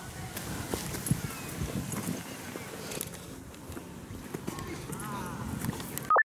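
A horse's hooves thud softly on dirt as it walks.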